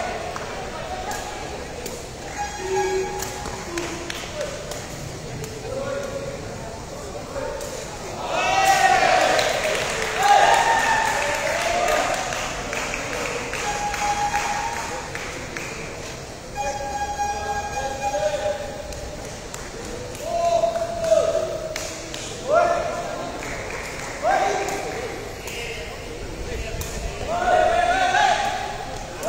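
Young men shout loudly in an echoing hall.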